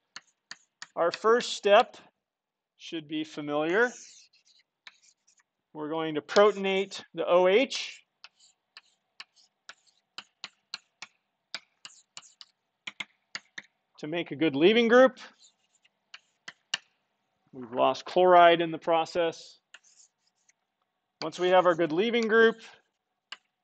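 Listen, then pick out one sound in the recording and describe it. A man speaks calmly in bursts, as if lecturing, heard through a microphone.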